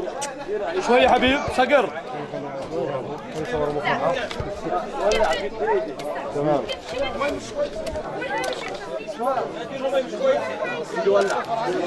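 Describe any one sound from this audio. Several men talk and chatter close by.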